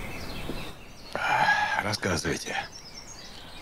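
A middle-aged man speaks calmly and quietly nearby.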